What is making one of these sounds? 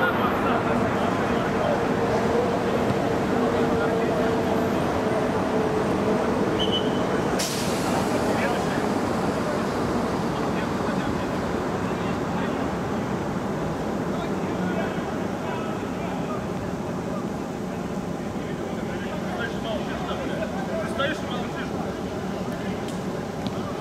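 Players shout and call to each other across an outdoor pitch.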